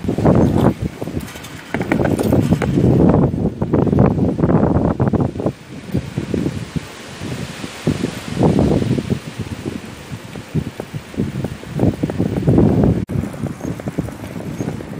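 Wind buffets the microphone in gusts outdoors.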